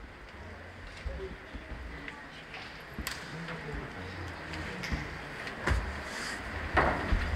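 A crowd of children and adults murmurs quietly in an echoing hall.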